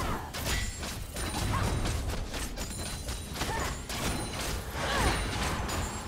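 Magic spell effects whoosh and crackle amid fighting sounds.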